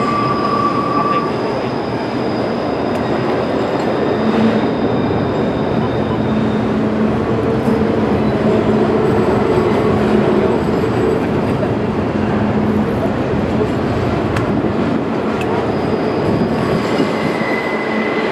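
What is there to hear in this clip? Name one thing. Train wheels clatter and squeal on the rails.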